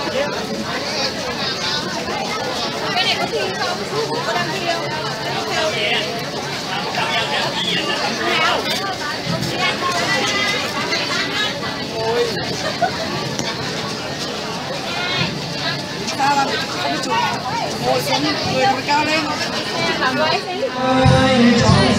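Women chatter and talk nearby in a lively crowd.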